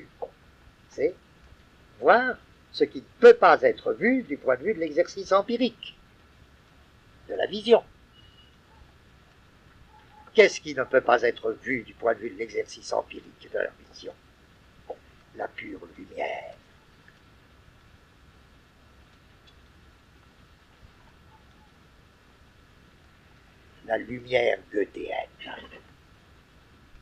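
An elderly man speaks calmly in bursts with long pauses.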